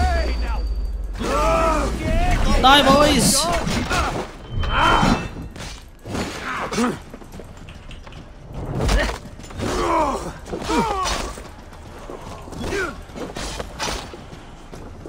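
Swords clash and strike in a close fight.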